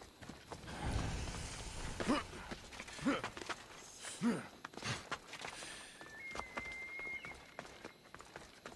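Footsteps scrape and tap on rock.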